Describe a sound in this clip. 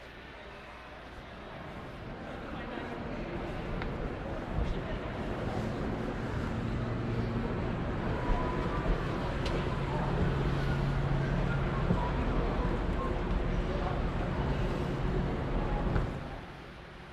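An escalator hums steadily nearby.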